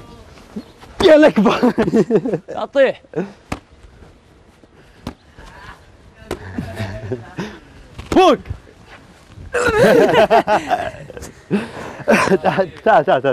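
Men shout and laugh loudly outdoors.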